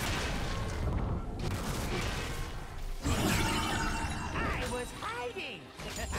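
Game effects chime and whoosh as a character moves.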